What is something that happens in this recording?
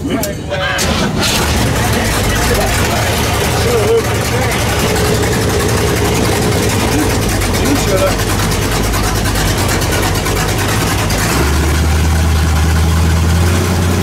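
An engine revs up and roars louder.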